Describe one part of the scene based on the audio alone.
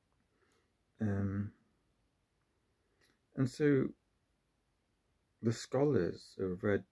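A man speaks calmly close to a microphone, in short bursts with pauses.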